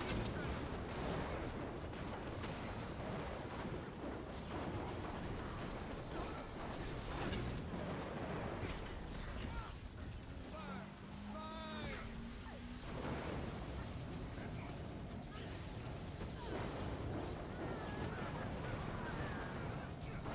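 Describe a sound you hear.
Fire roars and whooshes in bursts.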